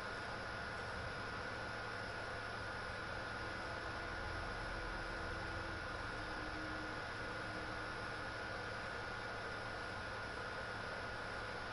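A smoke flare hisses steadily.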